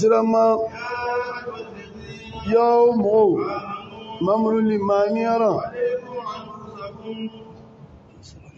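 An elderly man chants melodically into a microphone in an echoing hall.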